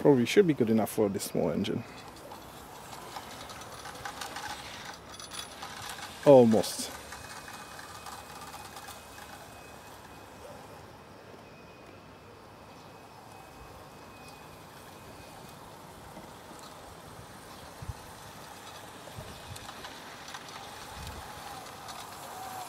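A small train rolls and clicks along the rails.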